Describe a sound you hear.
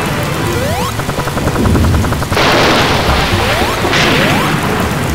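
Upbeat video game music plays throughout.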